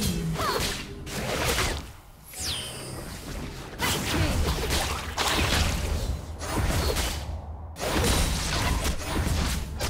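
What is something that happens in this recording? Fantasy battle sound effects of spells and sword hits clash in rapid bursts.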